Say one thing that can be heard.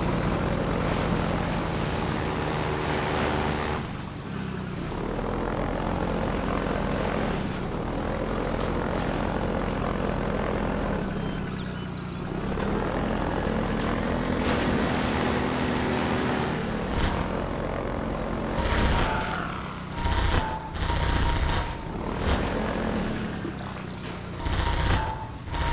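Water splashes under the wheels.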